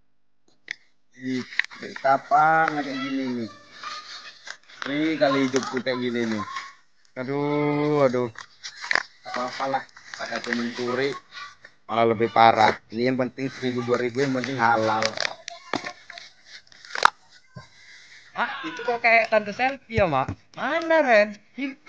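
A woman talks close by in a calm voice.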